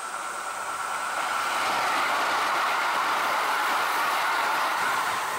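Train wheels clatter and screech on the rails.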